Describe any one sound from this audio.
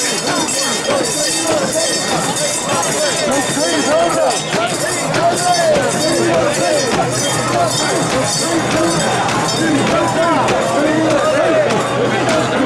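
Many voices shout and cheer all around, outdoors.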